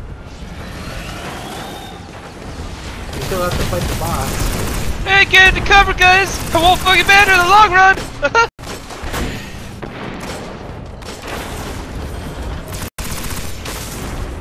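A weapon fires energy blasts in bursts.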